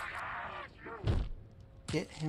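A gunshot bangs once.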